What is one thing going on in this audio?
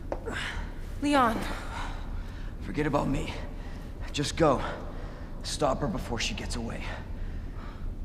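A young man speaks weakly and breathlessly, groaning in pain.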